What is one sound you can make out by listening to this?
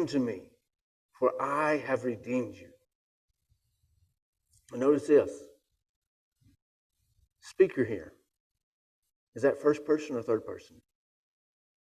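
A man reads aloud calmly through a microphone, pausing between phrases.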